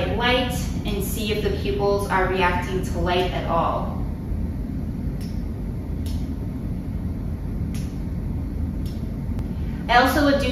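A woman speaks calmly and clearly, close by, as if explaining.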